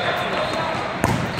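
A volleyball is struck with a sharp slap.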